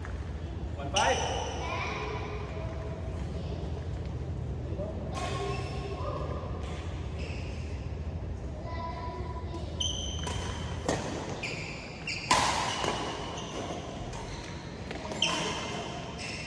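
Shuttlecocks are struck sharply by rackets in a large echoing hall.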